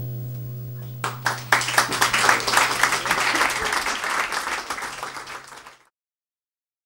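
An electric guitar is struck in loud, noisy, distorted bursts that suddenly cut off.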